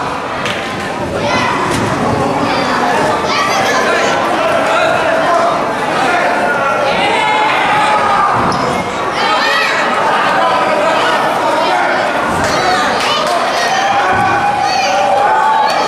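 A crowd of spectators cheers and chatters in a large echoing hall.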